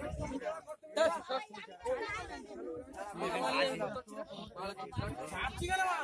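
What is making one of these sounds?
Men talk with animation close by, outdoors.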